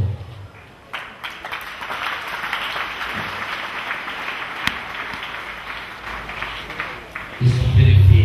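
A crowd murmurs and cries out in the background.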